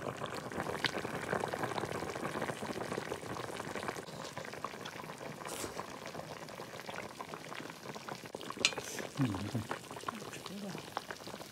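Broth bubbles and simmers in a pot.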